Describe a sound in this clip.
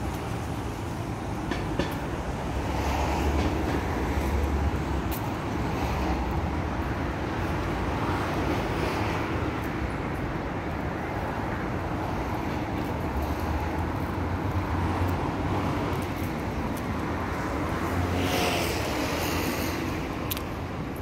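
Wind blows outdoors and rustles through tree leaves.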